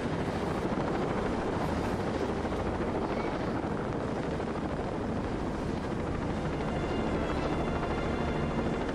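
Flames roar and crackle from a burning wreck.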